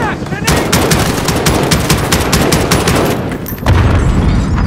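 A rifle fires rapid bursts of loud gunshots.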